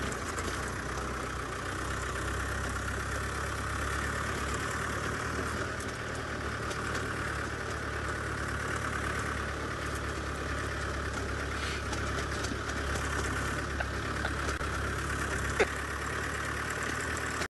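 A vehicle engine idles with a low steady hum.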